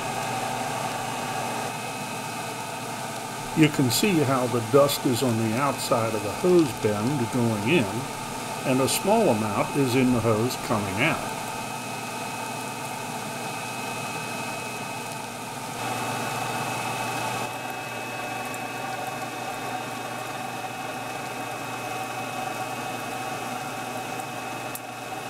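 A dust collector motor hums steadily.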